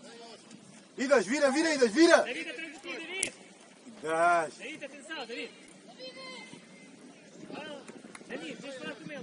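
Young players shout loudly to each other outdoors.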